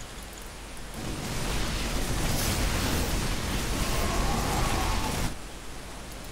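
Weapons fire and blasts rumble in a noisy battle.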